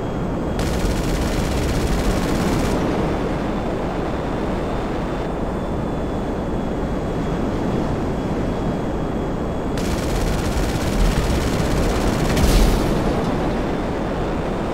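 A jet engine roars steadily overhead.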